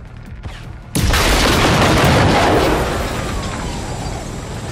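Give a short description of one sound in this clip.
A large explosion booms and rumbles away.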